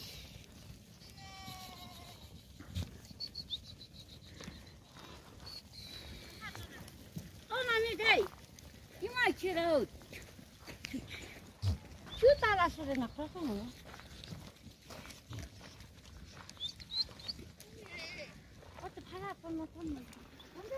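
A large flock of sheep and goats bleats loudly nearby.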